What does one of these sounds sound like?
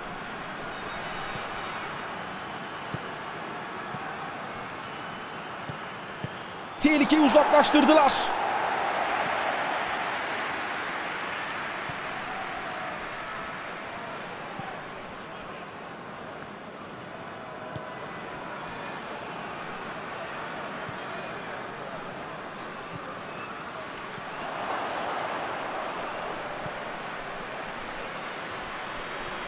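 A large stadium crowd roars steadily, swelling at times.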